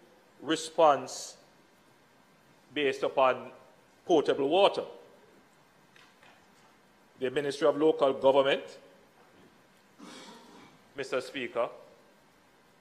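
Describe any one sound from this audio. A man speaks in measured phrases into a microphone, with short pauses between them.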